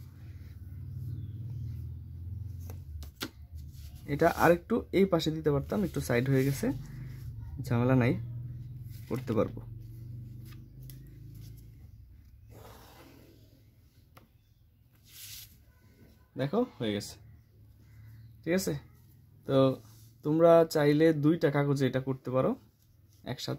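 Paper rustles softly as hands handle it.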